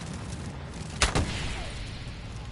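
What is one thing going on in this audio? A fiery explosion bursts with a loud boom.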